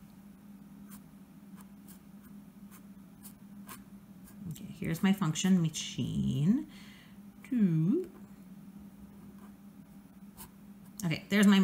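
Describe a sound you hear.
A felt-tip pen scratches and taps on paper.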